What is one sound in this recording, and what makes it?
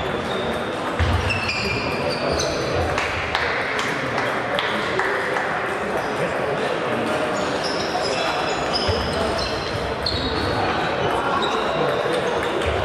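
A table tennis ball clicks back and forth on paddles and a table in a large echoing hall.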